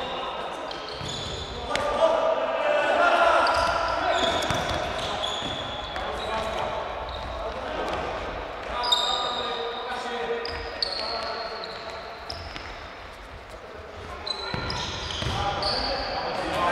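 Footsteps patter quickly as players run.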